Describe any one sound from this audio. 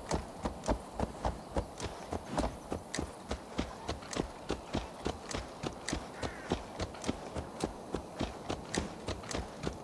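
A horse's hooves clop steadily on a dirt path at a quick pace.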